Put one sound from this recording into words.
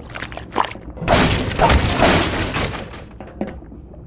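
Wooden crates smash and splinter under crowbar blows.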